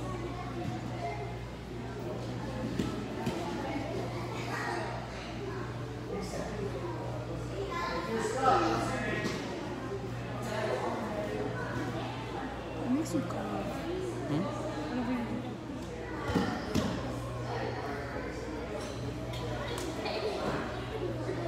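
Young men and women talk and call out in a large echoing hall.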